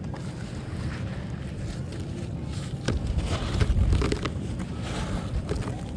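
Chalky lumps crunch and break apart as hands crush them.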